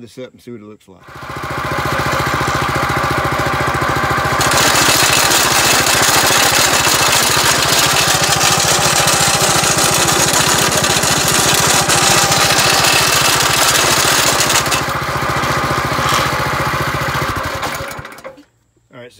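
A small petrol engine runs loudly and steadily close by.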